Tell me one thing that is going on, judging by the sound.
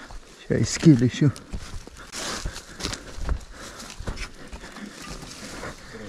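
Leaves and twigs rustle and crackle underfoot.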